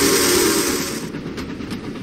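A steam locomotive hisses loudly.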